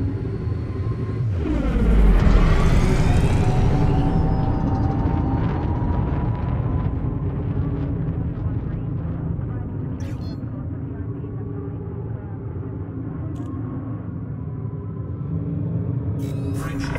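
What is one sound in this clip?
A spaceship engine hums with a deep, steady rumble.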